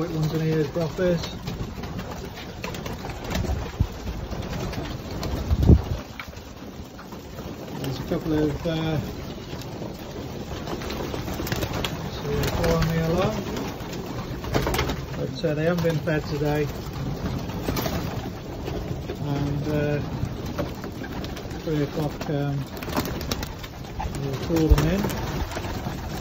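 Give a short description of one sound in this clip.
Pigeons coo in low, repeated bursts.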